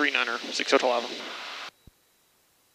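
A young man speaks calmly over a headset intercom.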